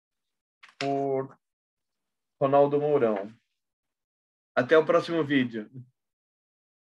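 A middle-aged man speaks in short phrases through an online call.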